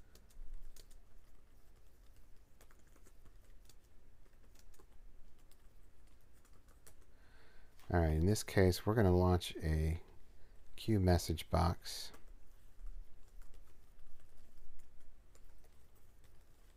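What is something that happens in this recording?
Keys on a keyboard click as someone types.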